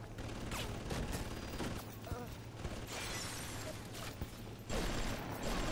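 An icy blast hisses from a hand.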